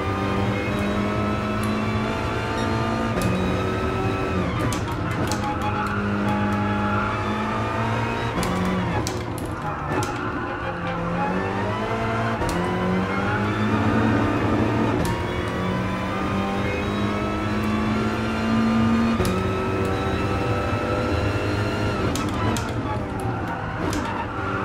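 A racing car engine roars loudly, revving up through the gears and dropping on braking.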